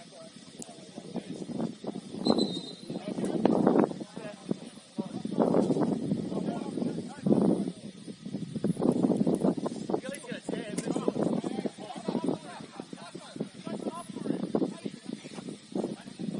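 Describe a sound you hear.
Young men shout to each other across an open field, some distance away.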